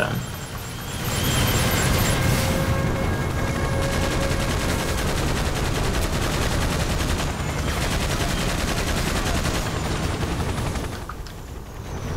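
A helicopter's rotor thumps and whirs steadily.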